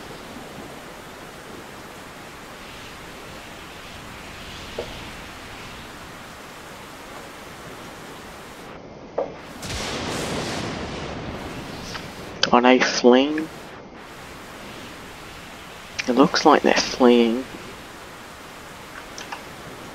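Water rushes against a ship's hull.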